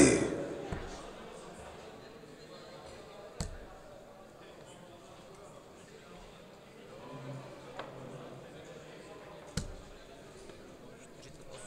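Darts thud into a dartboard.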